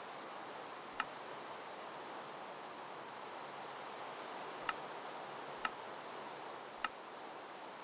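Soft clicks sound as menu tabs are tapped.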